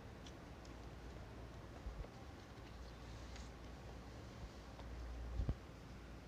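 Paper rustles softly as a notebook is moved.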